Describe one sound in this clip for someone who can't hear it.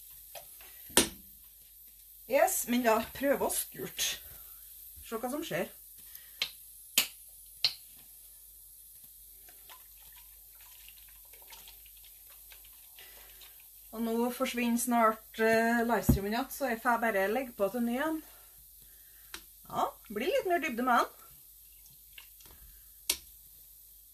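Metal tongs clink against the rim of a pot.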